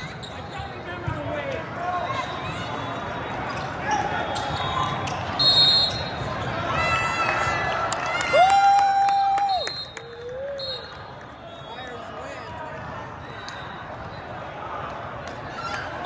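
Young women players shout to each other during a volleyball rally.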